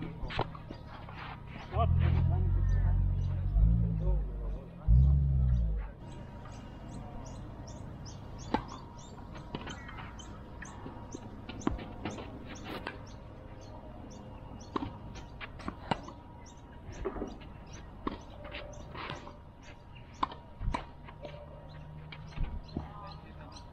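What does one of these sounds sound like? Tennis balls are struck by rackets with sharp pops, outdoors.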